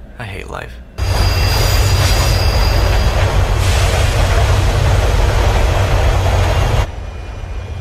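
A train rushes past loudly.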